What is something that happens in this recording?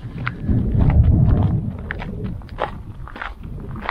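Wind gusts outdoors, rumbling across the microphone.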